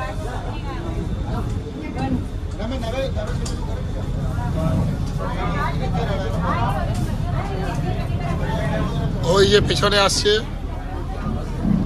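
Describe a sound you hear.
A boat engine drones low and steady.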